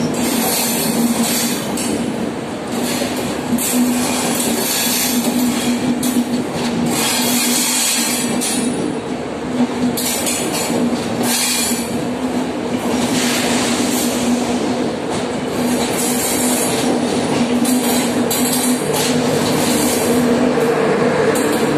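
Passenger train coaches roll past a platform as the train pulls out of a station.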